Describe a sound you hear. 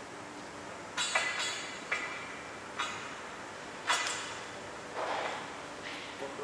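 Metal parts clink and click as a bolt and lock are fitted onto a bracket.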